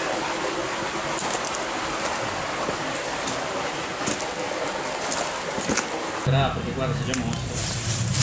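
Water trickles steadily in a shallow stream.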